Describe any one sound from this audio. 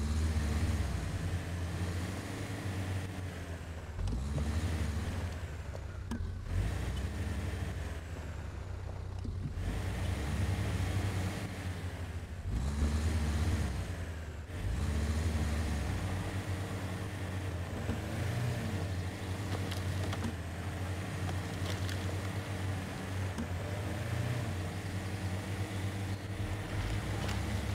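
A truck engine rumbles low and revs up and down as it crawls over rocks.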